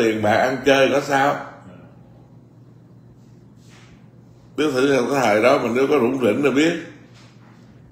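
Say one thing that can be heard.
A middle-aged man speaks calmly and expressively, close to a microphone, in short bursts with pauses.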